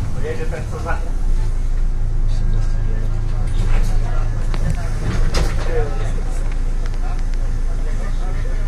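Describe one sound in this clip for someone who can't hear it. A bus engine idles with a low hum as the bus slows and stops.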